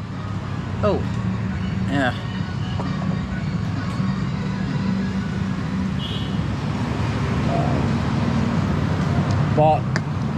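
A young man speaks briefly and casually, close by.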